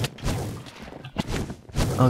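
Blows land with dull thuds in a video game.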